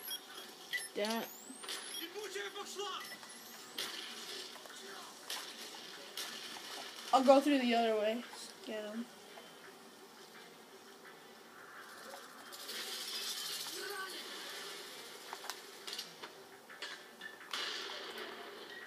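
Gunshots from a video game crack through a television speaker.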